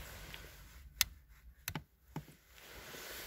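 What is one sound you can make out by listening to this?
Switches click on a car dashboard.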